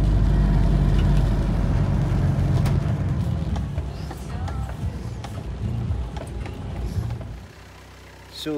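A car engine rumbles as it drives on a wet road.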